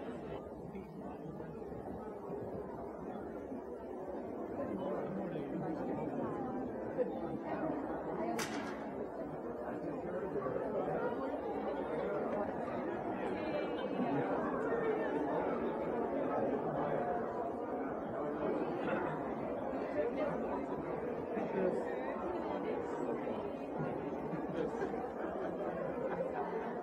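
A crowd of adults and children murmurs and chatters in a large echoing hall.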